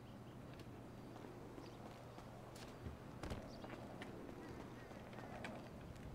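Footsteps land hard on a roof and pavement.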